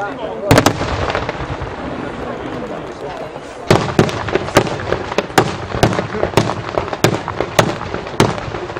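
Fireworks bang loudly in the open air, one after another.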